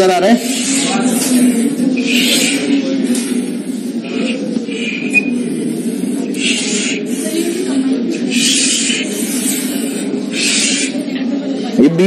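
Chalk taps and scratches rapidly on a board.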